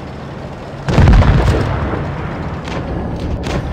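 A shell explodes with a heavy blast.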